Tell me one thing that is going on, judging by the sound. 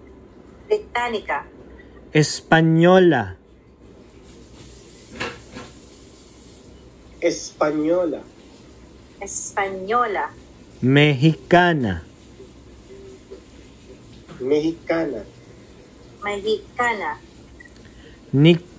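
A man speaks in bursts over an online call.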